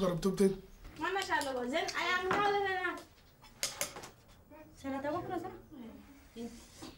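A woman speaks in a lilting, sing-song voice nearby.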